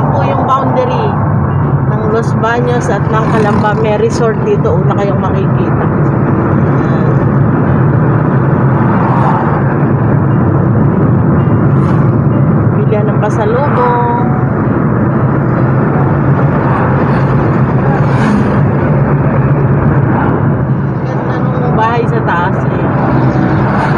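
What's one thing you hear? A car engine hums steadily as tyres roll over the road, heard from inside the car.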